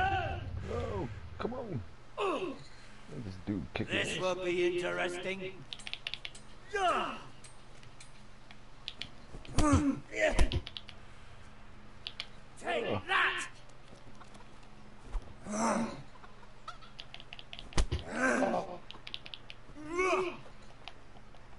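A man grunts and shouts with effort while fighting.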